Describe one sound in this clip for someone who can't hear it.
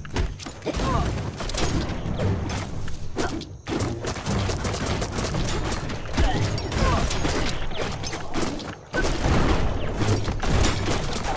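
Weapons clash and thud in a rapid fight.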